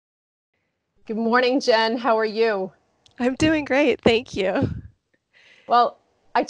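A woman speaks cheerfully over an online call.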